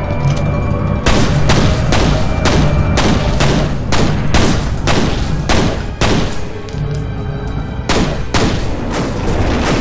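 Pistol shots ring out in rapid bursts, echoing.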